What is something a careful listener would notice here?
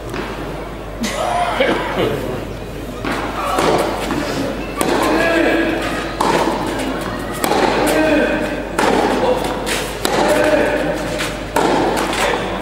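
A tennis ball is struck with a racket back and forth in a rally.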